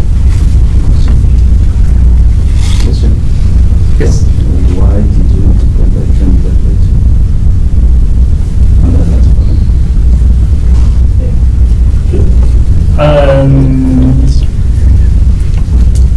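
A young man lectures calmly, heard through a microphone.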